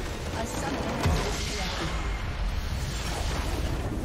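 A large magical blast booms and rings out.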